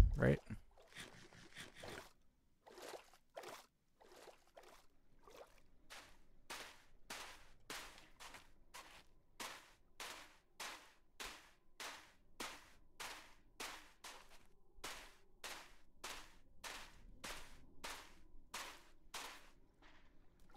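Footsteps crunch steadily on hard ground at an even walking pace.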